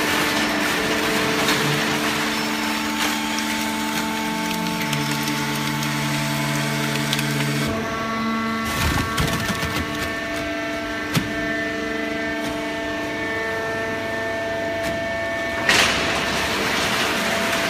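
A baling machine hums steadily with a loud whining drone.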